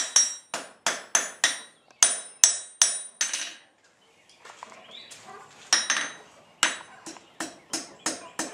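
A hammer strikes hot metal on an anvil with sharp ringing clangs.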